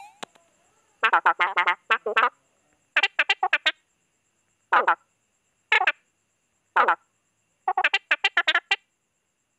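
Quick chirpy game blips chatter in short bursts, like a cartoon character babbling.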